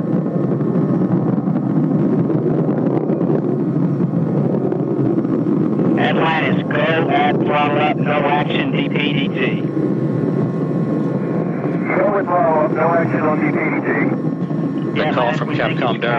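Rocket engines roar with a deep, steady rumble.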